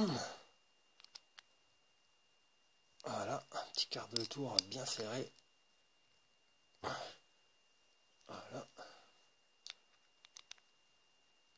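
Small metal parts click softly as they are handled.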